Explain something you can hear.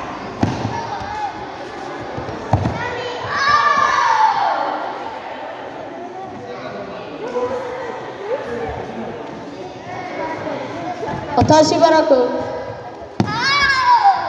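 Bare feet thud and slap on a mat.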